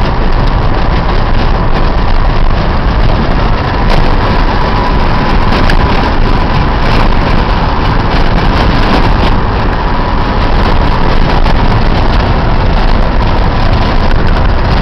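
Tyres rumble and crunch over a rough dirt road.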